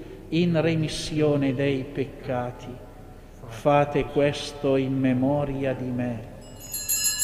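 A man chants in a large echoing hall, heard through a microphone.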